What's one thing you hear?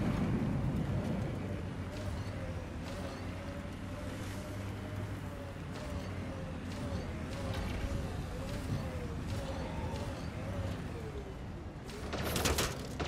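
A vehicle engine hums and rumbles over rough ground.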